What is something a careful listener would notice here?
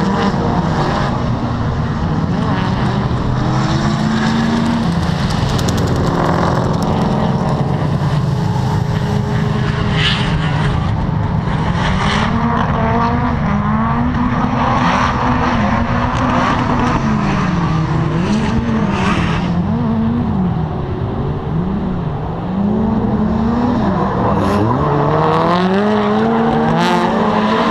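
Tyres squeal on the track.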